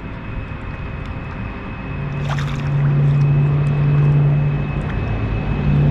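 A fish splashes at the water's surface.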